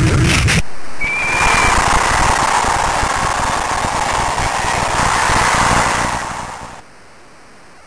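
A crowd cheers and roars loudly, then fades away.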